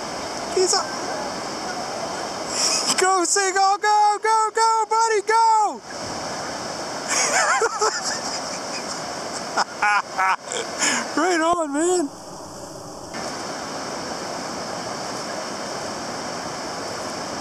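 Small waves wash steadily onto the shore.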